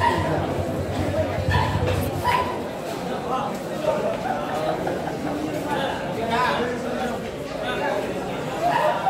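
Pool balls click together on a table.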